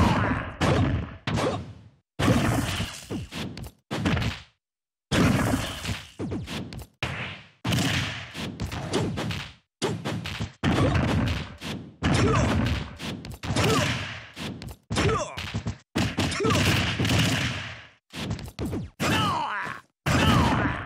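Heavy punches and kicks land with loud, sharp thuds and blasts in quick bursts.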